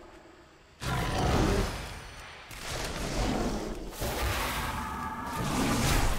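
Heavy blows thud and clash in a fight.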